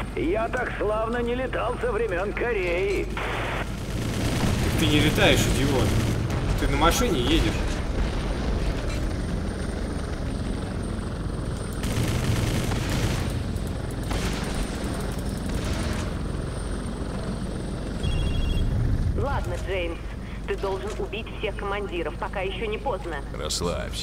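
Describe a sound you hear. A helicopter engine drones steadily.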